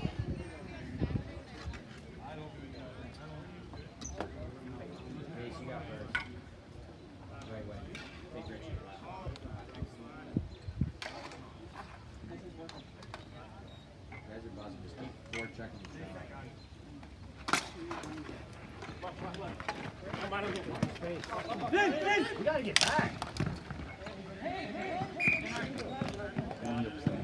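Hockey sticks clack sharply against a ball and each other.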